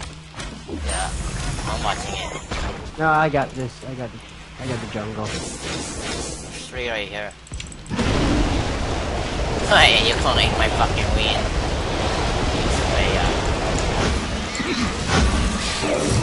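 Magical blasts whoosh and crackle in a fight.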